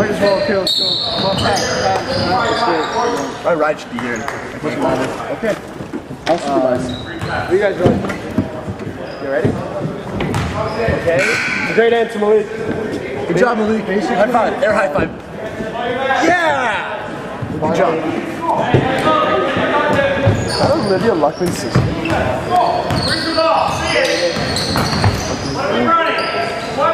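Young people in the crowd shout and cheer in a large echoing gym.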